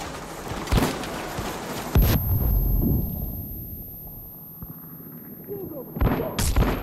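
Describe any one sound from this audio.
Gunshots bang sharply, a few at a time.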